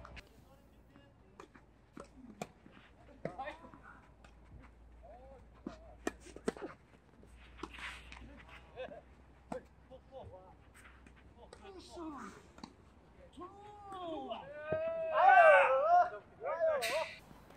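Tennis rackets strike a ball back and forth with sharp pops outdoors.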